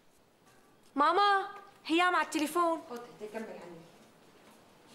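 An elderly woman speaks calmly.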